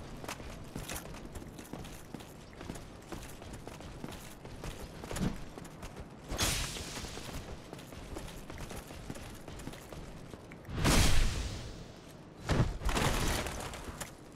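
Armour clanks and footsteps scrape on stone.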